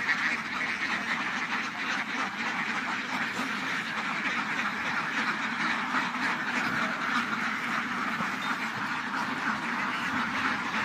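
A large flock of ducks quacks loudly and constantly, close by outdoors.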